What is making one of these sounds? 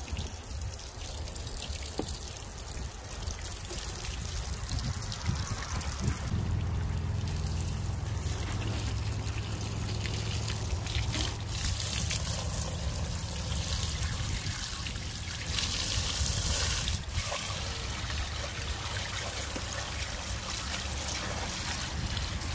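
Water from a hose sprays and splashes hard against a vehicle.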